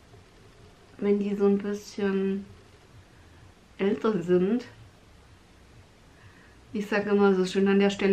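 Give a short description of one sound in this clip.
A young woman talks calmly and close by in short bursts.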